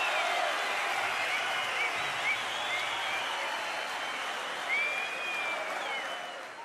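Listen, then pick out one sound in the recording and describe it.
Whistles shrill from within a large crowd.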